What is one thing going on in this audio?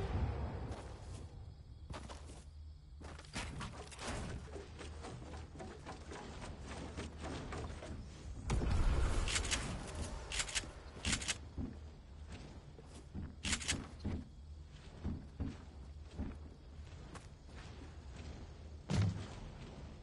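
Wooden pieces snap into place with quick knocking clatters.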